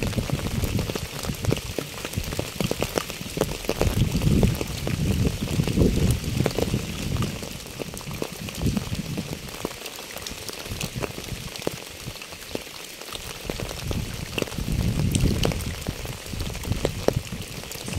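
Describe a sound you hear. Gusts of wind blow outdoors, rising and falling.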